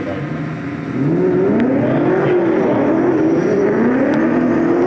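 A car engine revs up and down as it approaches from a distance.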